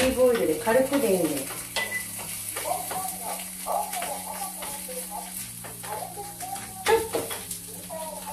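A spatula scrapes and clicks in a frying pan.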